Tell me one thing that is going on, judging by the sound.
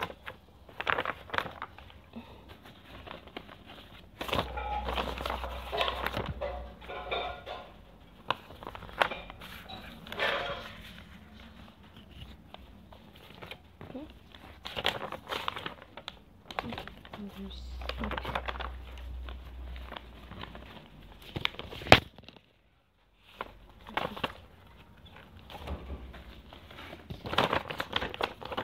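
Sheets of paper rustle and flap.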